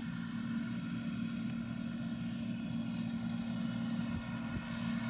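A combine harvester's engine drones steadily nearby.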